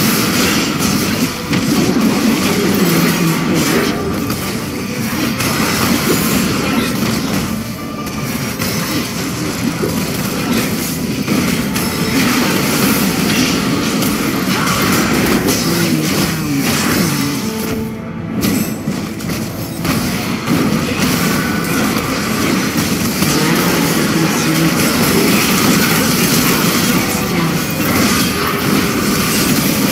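Magic spells crackle and blast in a fast fantasy battle.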